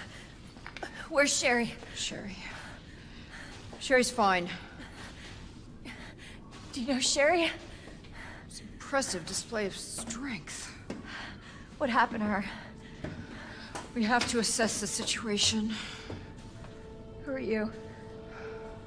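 A young woman speaks with tension.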